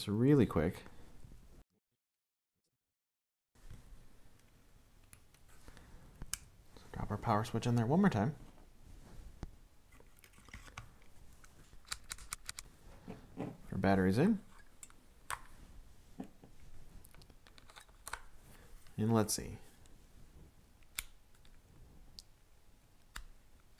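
Small plastic parts click and tap as they are handled close by.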